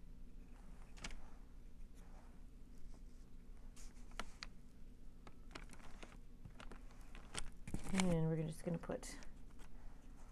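Small paper pieces tap and rustle on a table.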